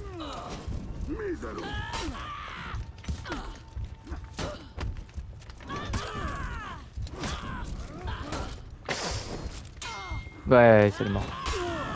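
Metal swords clash and ring in quick blows.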